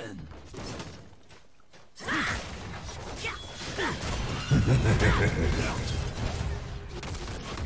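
Game sound effects of fighting clash and burst.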